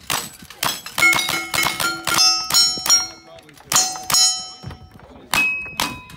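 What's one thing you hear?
Bullets strike steel targets that ring with a clear metallic clang.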